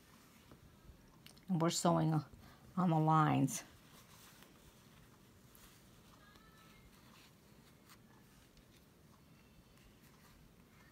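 Fabric rustles softly.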